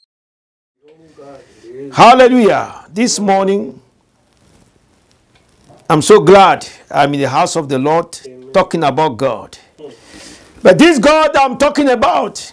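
A man speaks with feeling into a microphone, preaching in short bursts.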